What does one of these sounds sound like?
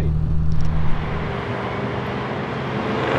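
A car drones past at a distance.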